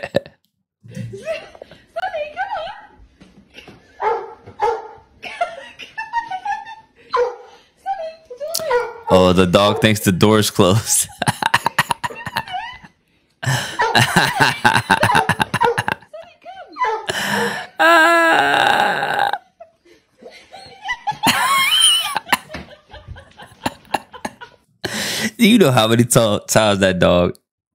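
A young man talks and laughs with animation, close to a microphone.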